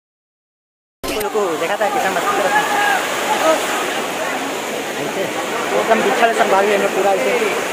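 Water rushes over rocks.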